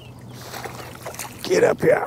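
A fish splashes and thrashes at the water's surface.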